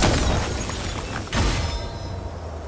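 A heavy blast booms with debris crackling.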